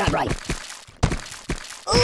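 A watermelon smashes with a wet splatter.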